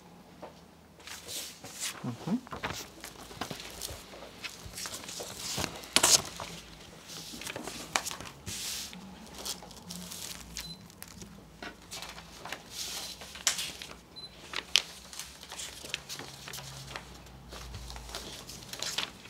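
Papers rustle as they are handled and turned.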